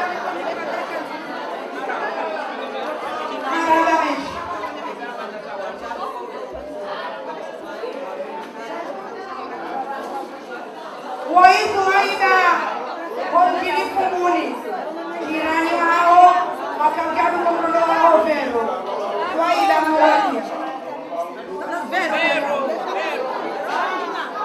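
A crowd of people chatters in the background.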